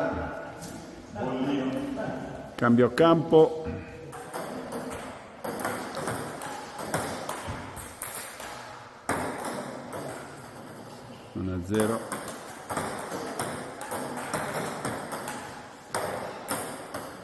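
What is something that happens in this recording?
A ping-pong ball clicks back and forth on a table and paddles.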